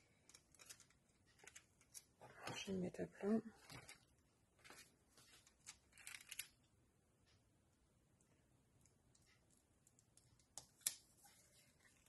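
Foil crinkles between fingers.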